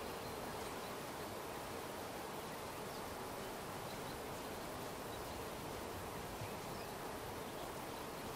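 Water splashes steadily in a fountain.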